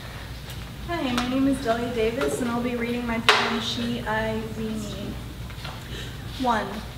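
A second young woman reads aloud calmly into a microphone.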